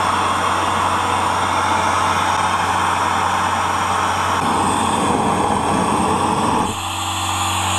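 A gas torch roars loudly.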